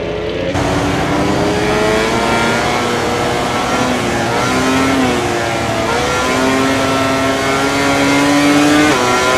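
A motorcycle engine revs hard, its pitch climbing and dropping with each gear change.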